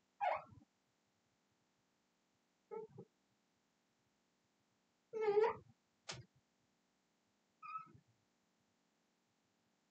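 A marker squeaks on a glass board.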